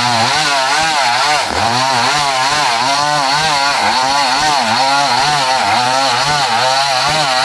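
A chainsaw roars loudly as it cuts through wood.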